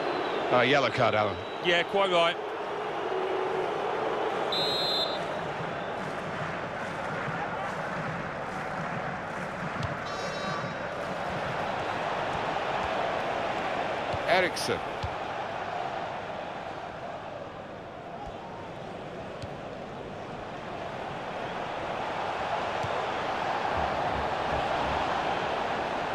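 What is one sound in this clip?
A stadium crowd roars and murmurs.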